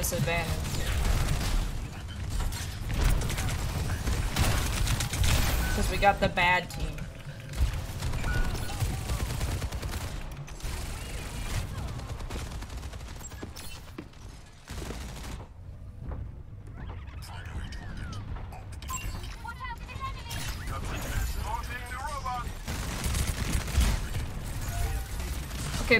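Rapid gunfire bursts in a video game.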